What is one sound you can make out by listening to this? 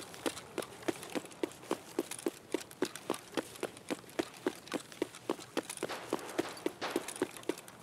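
Footsteps crunch steadily on gravel at a brisk walk.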